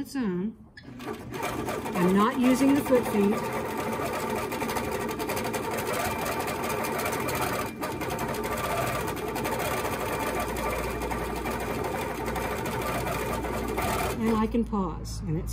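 A sewing machine runs with a steady, fast whirr.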